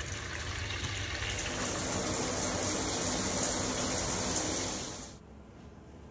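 Water runs from a tap and splashes into a basin.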